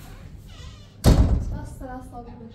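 A door bangs shut nearby.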